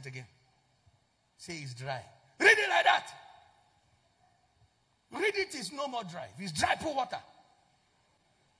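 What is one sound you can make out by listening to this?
A man speaks with animation into a microphone, in short bursts.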